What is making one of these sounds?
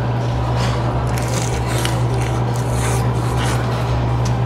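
A young man chews noisily.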